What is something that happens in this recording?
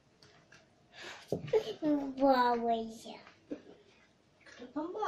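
A little girl talks in a high voice.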